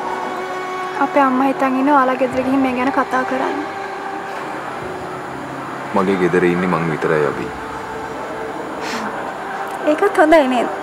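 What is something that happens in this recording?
A young woman speaks with feeling nearby.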